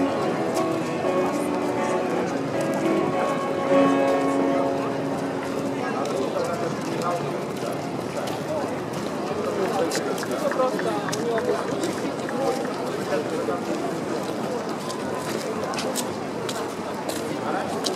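Footsteps tap on stone pavement nearby.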